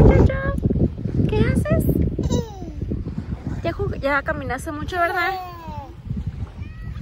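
A young girl talks and squeals in a high, excited voice close by.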